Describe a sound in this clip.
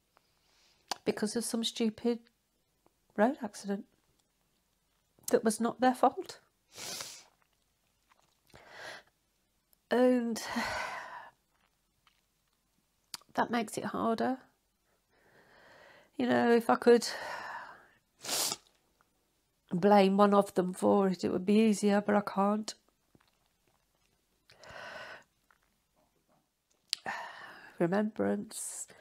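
A middle-aged woman speaks close to a microphone, emotionally and haltingly, pausing often.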